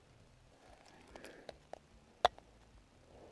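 A small object knocks against ice and splashes into water.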